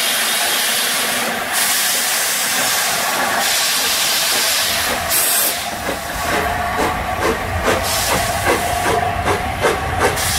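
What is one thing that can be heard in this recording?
Train wheels clank over the rail joints.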